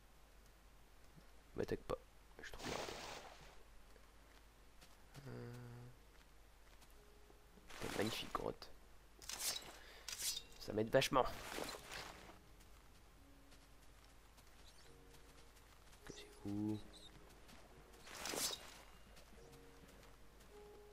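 Footsteps crunch on grass and stone.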